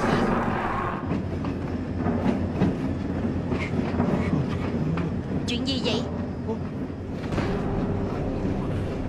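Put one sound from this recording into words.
A locomotive engine rumbles low and steady.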